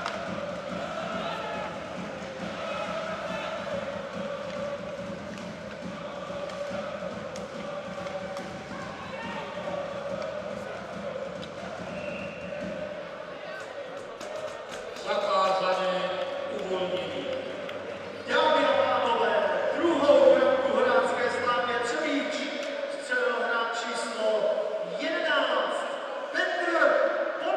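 A crowd chants and cheers in a large echoing arena.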